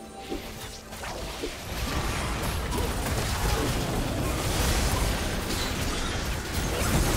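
Video game spell effects crackle and burst in a busy fight.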